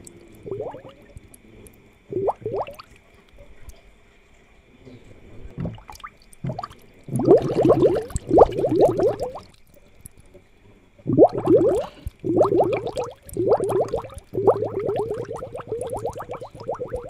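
Air bubbles gurgle up through water in bursts.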